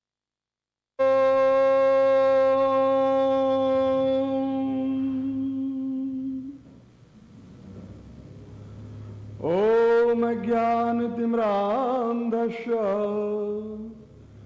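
An elderly man chants slowly in long, drawn-out sung notes.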